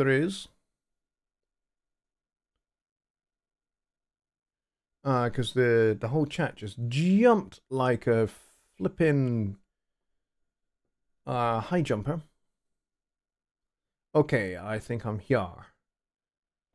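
A middle-aged man speaks calmly and close into a microphone, in short bursts with pauses.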